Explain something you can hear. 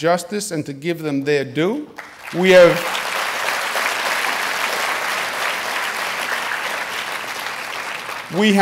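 A middle-aged man speaks firmly into a microphone.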